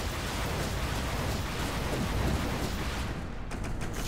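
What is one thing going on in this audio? An explosion bursts with a boom.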